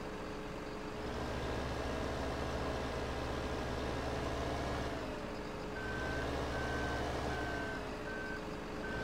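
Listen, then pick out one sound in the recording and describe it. A hydraulic crane arm whirs as it swings and lowers.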